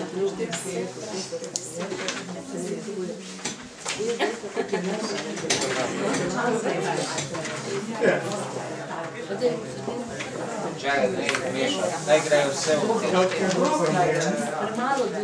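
Several men and women talk over one another around a table, in a room with some echo.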